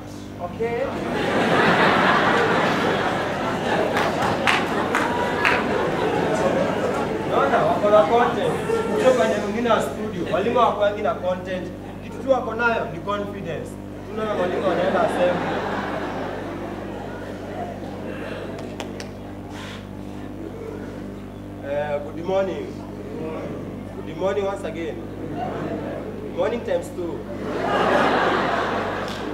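A young man speaks with animation in an echoing hall.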